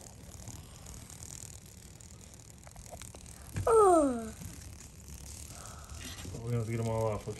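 Moth wings flutter softly against a plastic dish.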